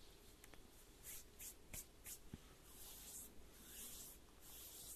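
Hands brush and rustle against paper.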